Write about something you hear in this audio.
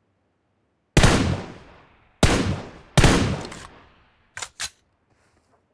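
A sniper rifle fires loud shots that echo away.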